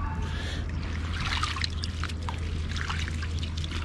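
Water splashes and drips as a fishing net is pulled through shallow water.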